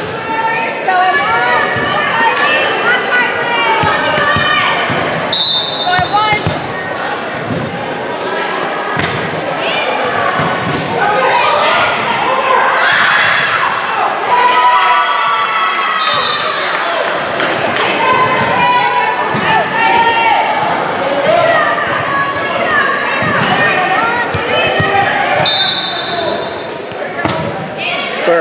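Young women cheer and shout excitedly in an echoing gym.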